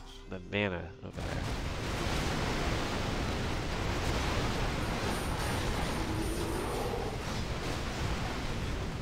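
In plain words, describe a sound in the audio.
Magic fire roars and crackles in a battle.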